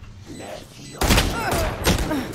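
Gunfire bursts out in quick shots.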